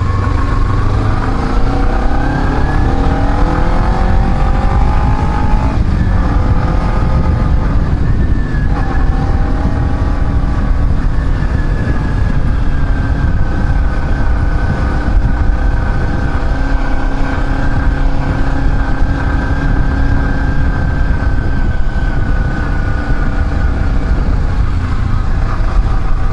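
Wind rumbles loudly past a moving rider.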